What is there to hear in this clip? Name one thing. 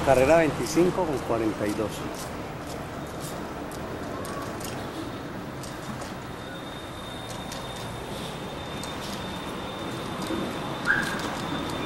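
A car drives along a street nearby.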